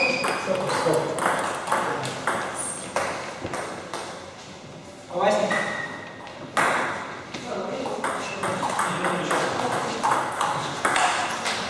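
A table tennis ball clicks back and forth off paddles and a table in a quick rally.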